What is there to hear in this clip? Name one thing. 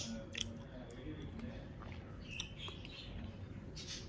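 A young man chews food.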